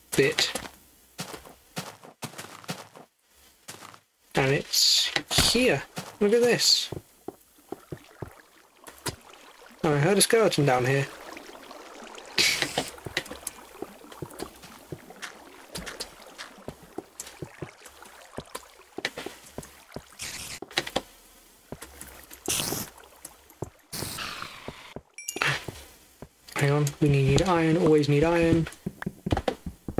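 Blocks crunch and thud as they are dug away in quick strokes.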